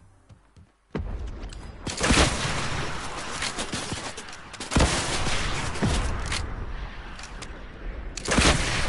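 Loud gunshots crack and boom in rapid bursts.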